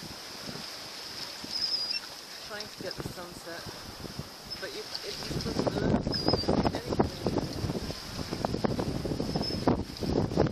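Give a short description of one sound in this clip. Wind blows hard over open water.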